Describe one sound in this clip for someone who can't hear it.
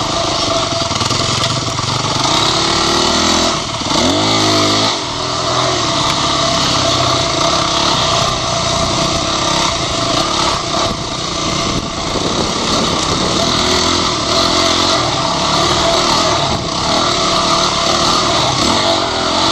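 A dirt bike engine roars and revs up close.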